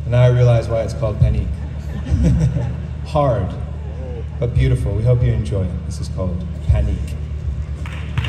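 A man speaks into a microphone over loudspeakers, outdoors.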